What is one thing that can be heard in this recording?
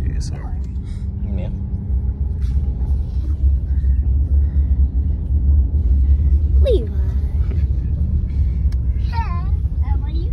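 A young girl talks excitedly.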